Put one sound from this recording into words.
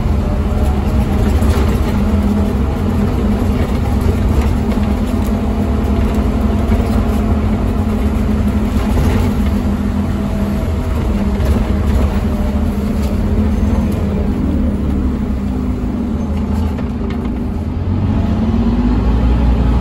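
A diesel bus engine drones from inside the bus as it drives along.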